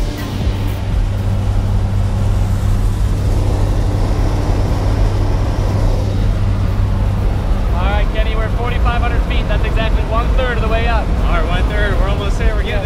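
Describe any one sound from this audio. An aircraft engine drones loudly and steadily.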